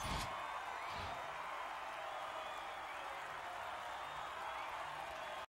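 A large crowd cheers and whistles steadily.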